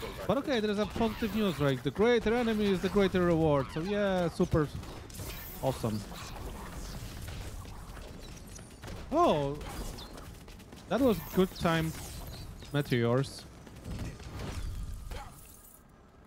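Video game combat sound effects clash and burst.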